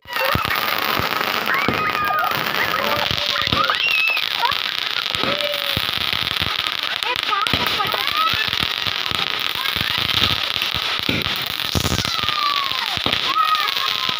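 Fireworks crackle and pop overhead.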